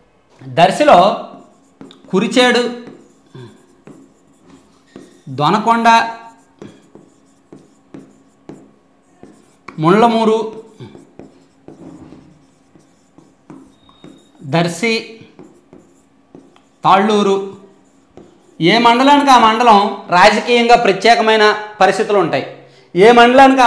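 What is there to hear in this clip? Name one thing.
A young man speaks through a clip-on microphone, calmly explaining in short phrases.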